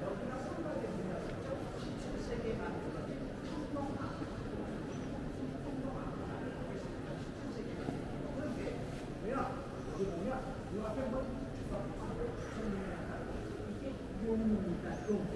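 A crowd of visitors murmurs softly in a large echoing hall.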